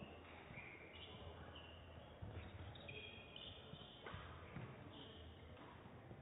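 Shoes squeak on a hard court floor in a large echoing hall.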